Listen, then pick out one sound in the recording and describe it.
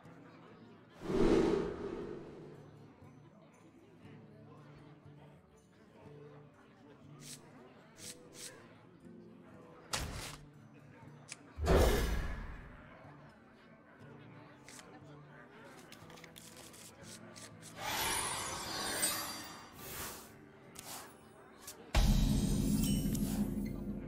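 Digital card game sound effects whoosh and chime as cards are dealt and swapped.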